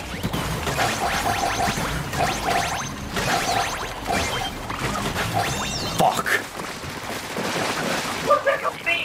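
Ink sprays and splashes in rapid bursts.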